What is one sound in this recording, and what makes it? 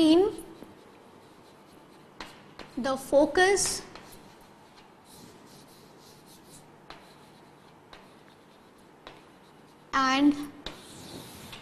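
A woman speaks calmly through a microphone, in short phrases.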